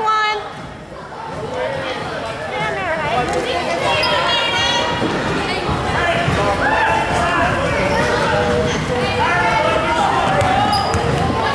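A crowd of spectators chatters and shouts in an echoing gym.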